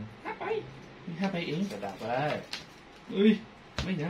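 Cards riffle and flick as a deck is shuffled in hands.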